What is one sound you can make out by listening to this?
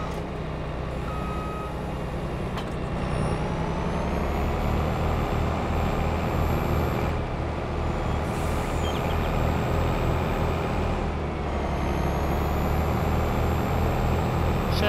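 A combine harvester's engine rumbles steadily and grows louder as it drives along.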